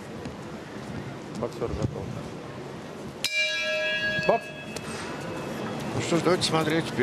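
A crowd murmurs in a large, echoing hall.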